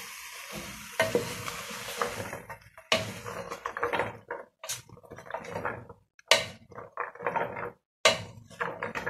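A wooden spatula stirs and scrapes food in a metal pot.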